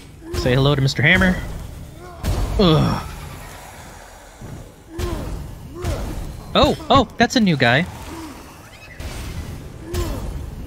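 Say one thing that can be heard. Fiery spells burst with loud whooshing blasts.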